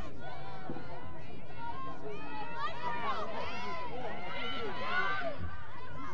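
Lacrosse sticks clack together at a faceoff.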